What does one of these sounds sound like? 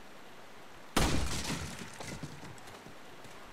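A wooden crate smashes apart, with splintering wood clattering down.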